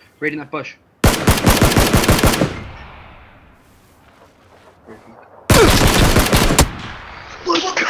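A rifle fires in two rapid, loud bursts.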